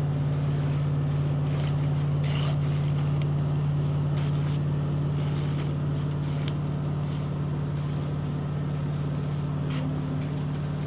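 Water from a fire hose hisses and splashes.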